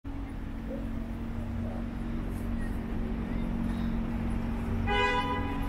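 Traffic rumbles steadily along a city street nearby.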